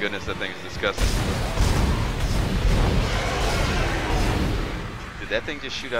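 A plasma cutter fires several shots.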